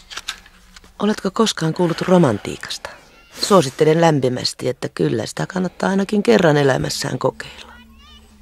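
A woman speaks with feeling nearby.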